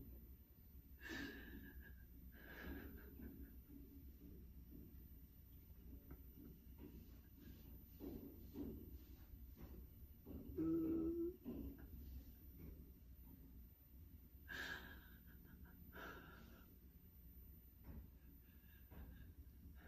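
A middle-aged woman whimpers in distress close by.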